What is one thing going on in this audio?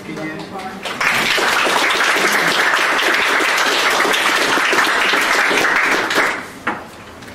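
People applaud loudly, then the clapping stops.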